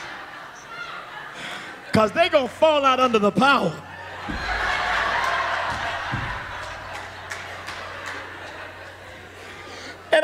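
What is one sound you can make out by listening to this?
A man laughs heartily into a microphone.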